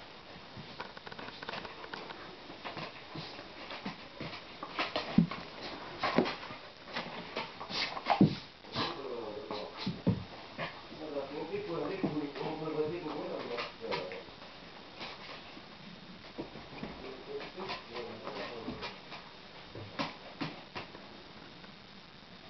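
Dogs' claws tap and scrabble on a wooden floor.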